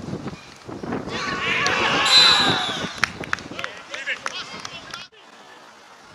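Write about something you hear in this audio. Men cheer loudly after a goal.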